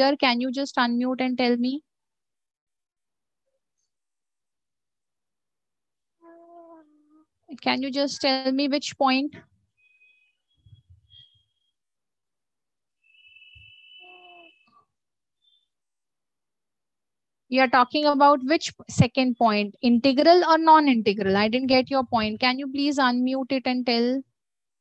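A woman speaks calmly through an online call, pausing now and then.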